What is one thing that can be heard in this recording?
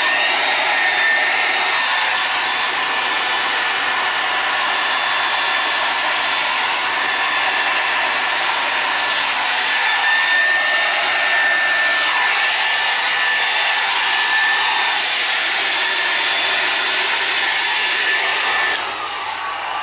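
A heat gun blows air with a steady, loud whooshing roar.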